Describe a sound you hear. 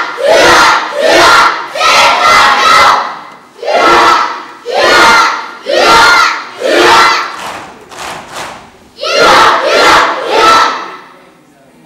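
A man shouts short commands in a large echoing hall.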